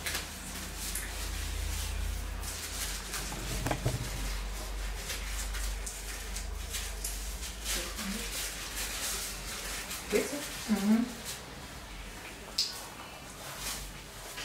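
A comb rustles through hair.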